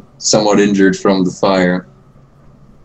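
A young man speaks loudly and animatedly into a close microphone.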